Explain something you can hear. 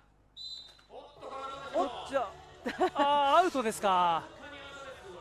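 A man speaks loudly with animation.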